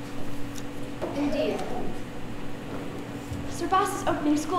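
A young girl speaks clearly in a large hall.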